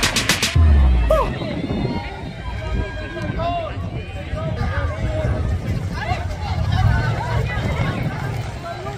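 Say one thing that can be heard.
A crowd of young women and girls chatters and calls out nearby, outdoors.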